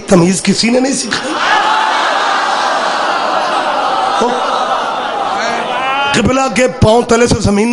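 A man speaks forcefully through a loudspeaker.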